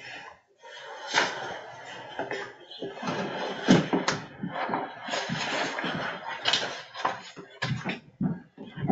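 Paper rustles close to a microphone.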